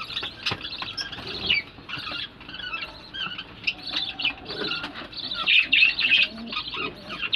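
Peahens chirp and cluck softly close by.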